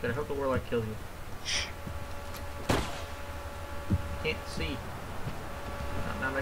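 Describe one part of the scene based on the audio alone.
Fighters jump and land with soft thuds.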